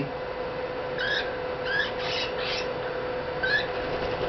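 A small toy squeaks in short chirps.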